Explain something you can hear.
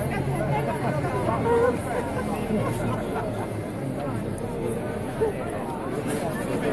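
A large crowd of men and women chatters all around, close by.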